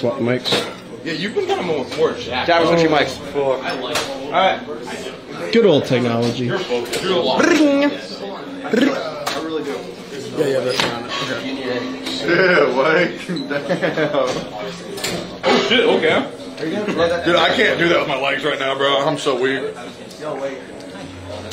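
Several men talk loudly and with animation close by.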